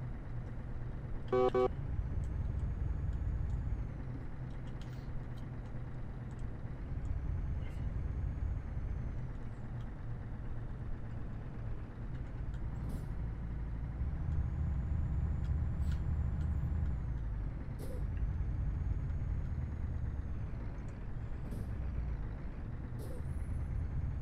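A truck engine hums low and steady as the truck drives along.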